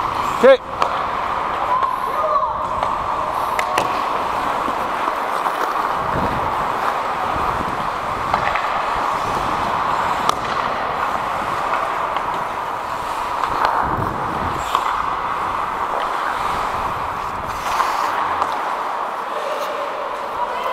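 Skate blades scrape and hiss across ice close by.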